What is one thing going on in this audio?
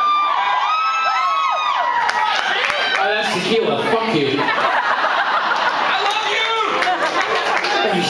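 A young man sings loudly into a microphone over a loudspeaker.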